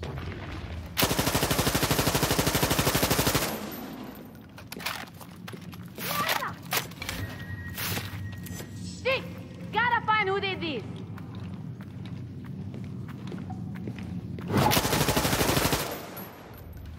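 An automatic rifle fires rapid bursts that echo in an enclosed tunnel.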